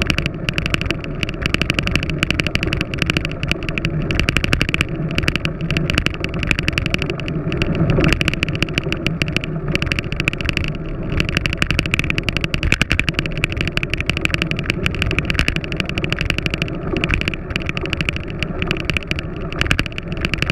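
Wind buffets a microphone on a moving road bicycle.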